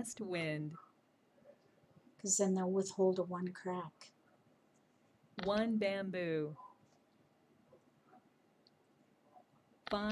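A woman talks calmly and close to a microphone, in short phrases with pauses.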